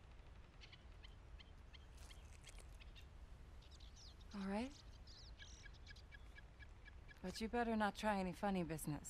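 Birds chirp.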